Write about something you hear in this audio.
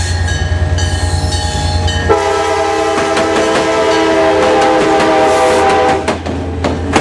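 A train horn blares loudly and close by.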